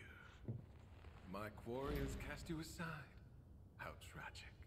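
A man speaks in a mocking, theatrical tone.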